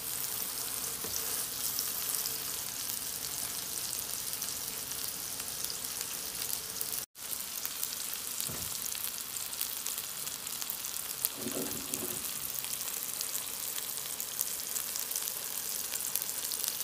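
Meat patties sizzle and crackle in hot oil.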